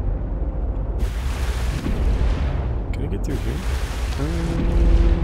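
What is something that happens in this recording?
Water splashes and rushes as a swimmer breaks the surface and dives back under.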